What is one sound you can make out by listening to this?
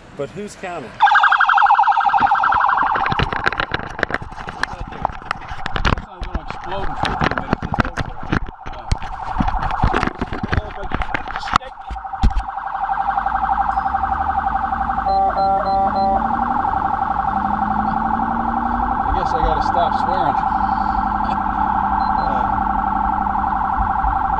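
A police siren wails loudly and steadily.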